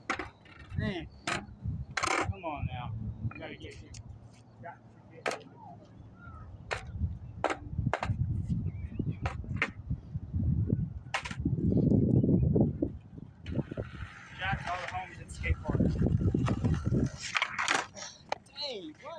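A skateboard clacks sharply against the ground.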